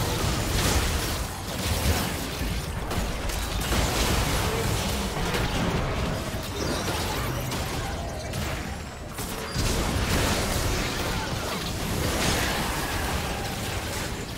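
Game spell blasts and explosions crackle and boom rapidly.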